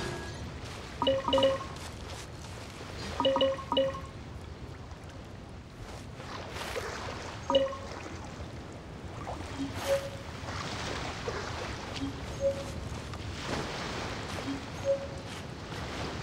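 Short game chimes ring as items are collected.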